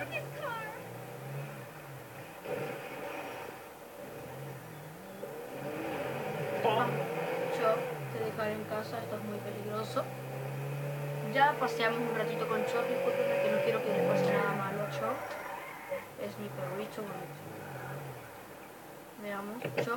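A car engine revs and rises and falls in pitch through a television speaker.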